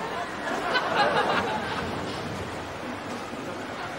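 A boy laughs softly nearby.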